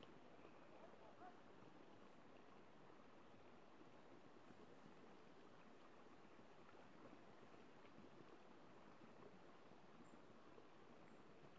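Water trickles steadily along a shallow stream.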